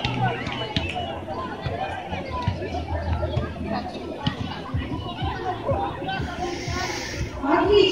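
A large outdoor crowd of children and adults chatters and calls out.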